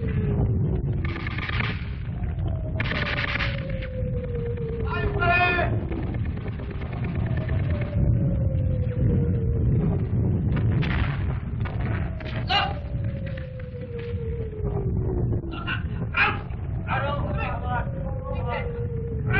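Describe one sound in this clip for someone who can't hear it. Men shout loudly.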